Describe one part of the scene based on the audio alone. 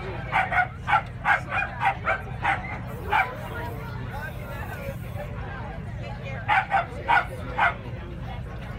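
A crowd of spectators claps and cheers outdoors.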